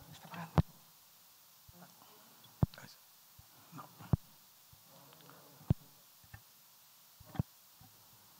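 Men and women murmur softly nearby.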